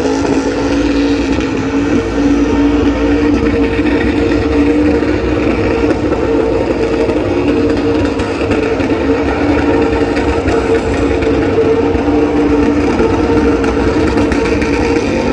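Tyres squeal as they spin on the track.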